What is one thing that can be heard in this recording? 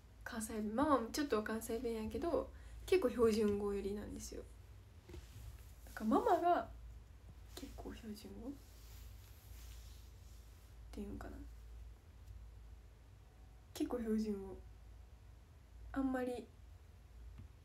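A young woman talks calmly and closely into a microphone, in short bursts with pauses.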